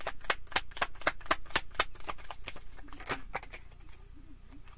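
Cards riffle and snap quickly as a deck is shuffled.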